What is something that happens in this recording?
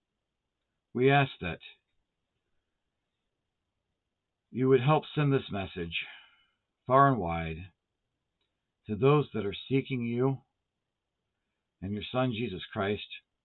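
An older man chants prayers slowly and close by, with pauses between phrases.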